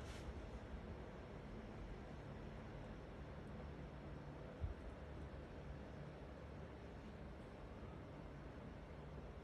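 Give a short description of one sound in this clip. Small beads click softly as a hand nudges them on cloth.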